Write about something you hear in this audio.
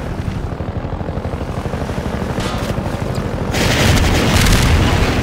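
A boat engine chugs with a rapid, steady throb.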